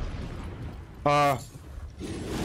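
A young man shouts in surprise close to a microphone.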